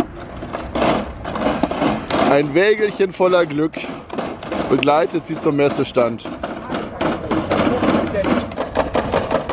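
Plastic crates on small wheels rattle over paving stones.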